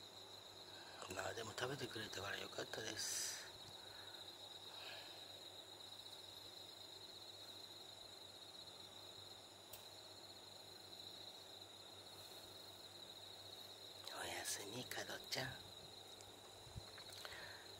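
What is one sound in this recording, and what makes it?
A cat licks its paw.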